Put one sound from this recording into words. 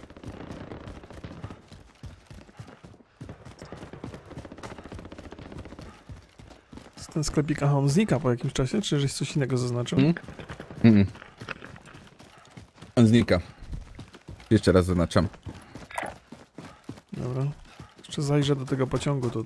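Quick footsteps patter over ground.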